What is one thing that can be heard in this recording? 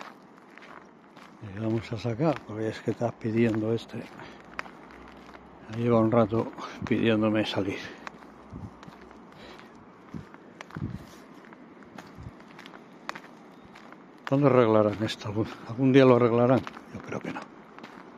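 A small dog's paws patter on a gravel path.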